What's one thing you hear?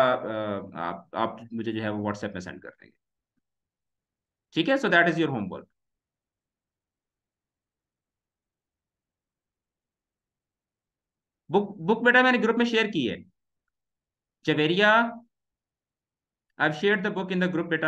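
A young man speaks calmly into a close microphone, with long pauses.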